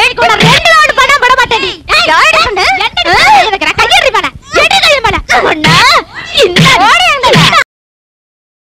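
A woman shouts angrily up close.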